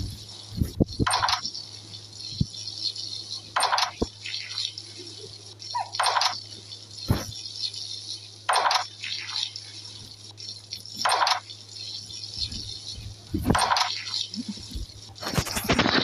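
Cartoon water splashes in through a window in regular bursts.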